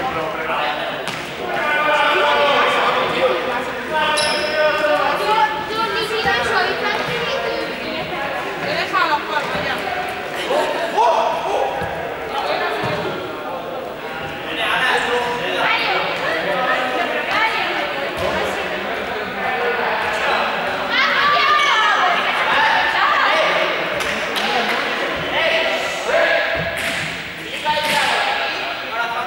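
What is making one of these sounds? Basketballs bounce on a hard floor in a large echoing hall.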